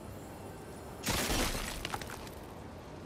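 A crystal shatters with a loud burst.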